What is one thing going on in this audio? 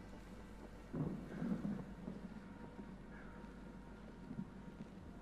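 A man speaks briefly and quietly into a close microphone.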